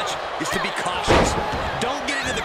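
A body slams onto a ring mat with a heavy thud.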